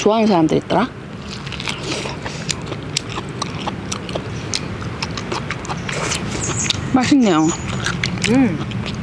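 A young woman chews and smacks her lips while eating.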